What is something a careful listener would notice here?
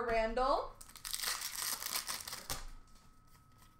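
Plastic-wrapped card packs rustle and crinkle as hands sort through them.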